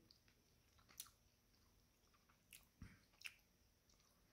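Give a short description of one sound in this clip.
A man chews food quietly.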